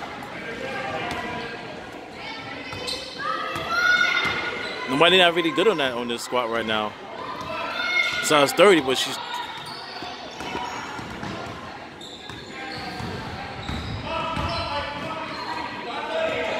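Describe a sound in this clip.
Spectators shout and cheer in a large echoing gym.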